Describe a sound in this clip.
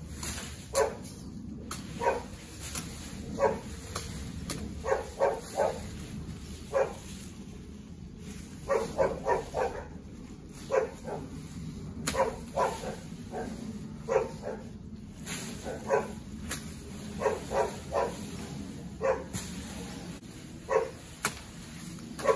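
Pruning shears snip through branches up in a tree.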